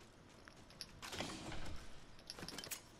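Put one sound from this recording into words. A metal loot bin clanks and whooshes open.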